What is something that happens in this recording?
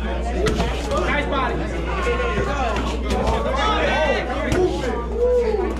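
Boxing gloves thud against each other in quick punches.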